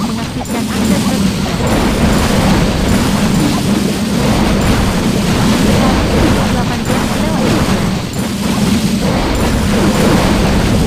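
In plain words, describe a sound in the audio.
Fire-breathing dragons blast buildings in a video game battle.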